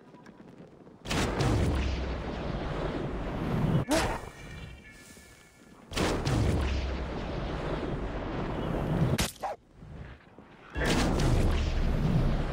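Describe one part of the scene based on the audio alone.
Wind rushes loudly in bursts, swelling and dropping away.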